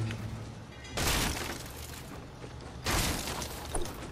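Wooden panels snap quickly into place.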